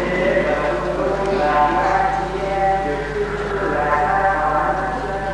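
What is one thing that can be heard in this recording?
A group of men sings slowly together in an echoing hall.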